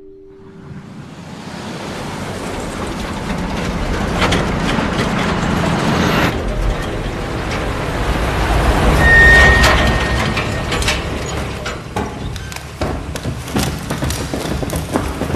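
A truck engine rumbles and grows louder as the truck drives in, echoing in a large enclosed space.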